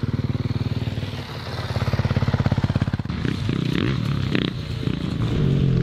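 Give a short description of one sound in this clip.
Dirt bike engines idle and rev loudly.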